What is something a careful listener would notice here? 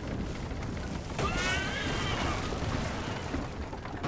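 A wagon explodes with a loud blast.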